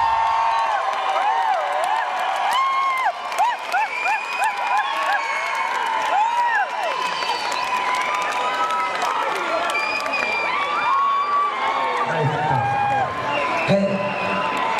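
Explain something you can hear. A crowd of young fans screams and shrieks loudly throughout.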